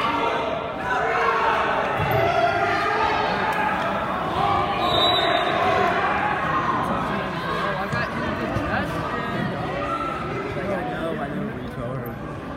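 Wrestlers' shoes squeak on a mat.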